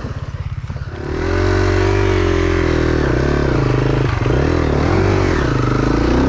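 A dirt bike engine revs loudly, its pitch rising and falling.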